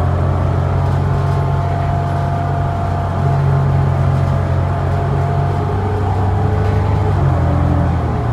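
A bus body rattles softly over the road.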